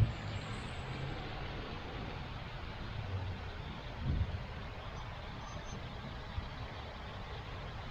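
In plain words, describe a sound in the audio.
A fountain splashes steadily in the distance.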